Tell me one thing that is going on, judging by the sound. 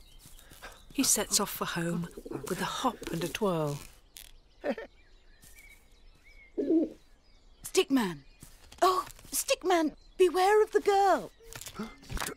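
A man speaks with animation in a cartoonish voice.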